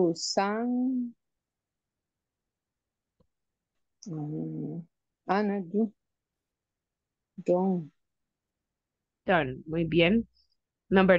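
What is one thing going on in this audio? A woman speaks calmly in short phrases through an online call.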